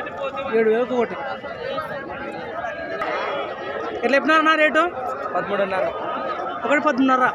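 Several men talk nearby in a busy outdoor crowd.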